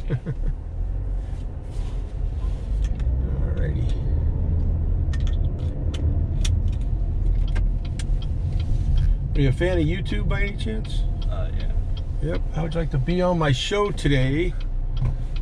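A car's engine hums low and steady from inside the cabin.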